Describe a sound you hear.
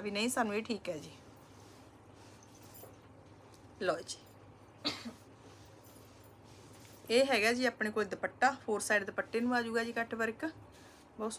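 A woman speaks close by with animation.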